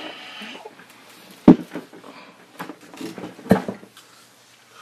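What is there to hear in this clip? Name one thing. A chair creaks and thumps as a man rises from it.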